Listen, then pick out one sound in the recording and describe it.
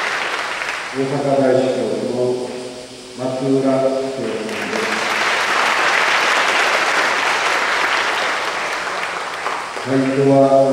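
A man chants slowly through a microphone in a large echoing hall.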